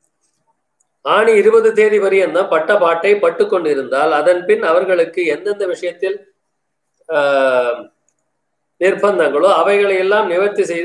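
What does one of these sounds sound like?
An elderly man reads aloud in a steady, chanting voice close by.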